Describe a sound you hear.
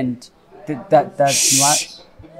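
A young man speaks forcefully up close.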